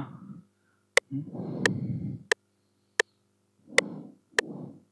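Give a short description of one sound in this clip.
A computer mouse clicks sharply at a steady beat.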